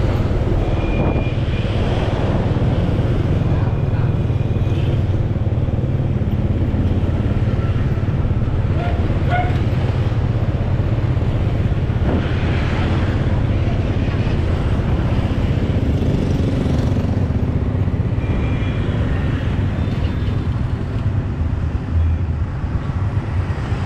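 Other motorbikes pass by on the road.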